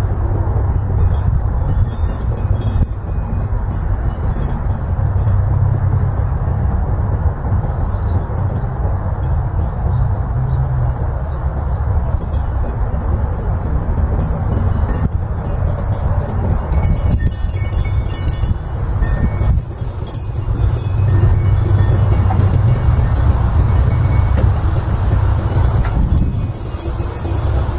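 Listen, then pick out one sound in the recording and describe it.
Dry leaves rustle in the wind.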